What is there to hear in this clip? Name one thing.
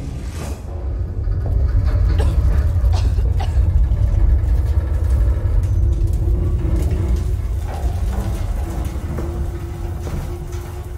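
A large fan whirs with a deep, steady rumble.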